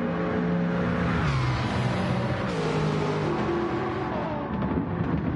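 A racing car zooms past, its engine pitch dropping as it goes by.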